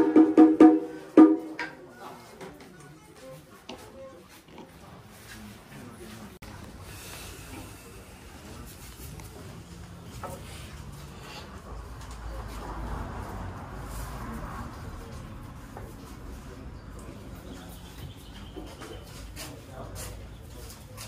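Several men talk and murmur nearby.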